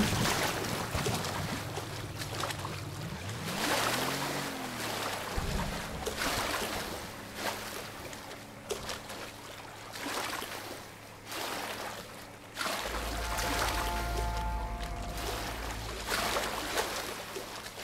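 Water splashes as a man swims with strokes.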